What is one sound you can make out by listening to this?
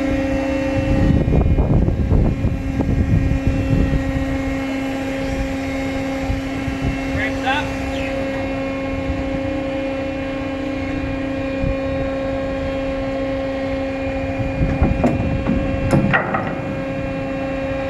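Wind gusts rumble across an open deck.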